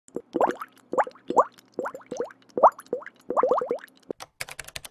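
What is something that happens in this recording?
Liquid bubbles with quick, rising popping blips.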